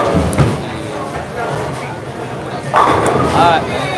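A bowling ball rumbles down a wooden lane.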